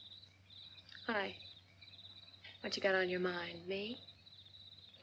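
A young woman speaks in an emotional, wavering voice close by.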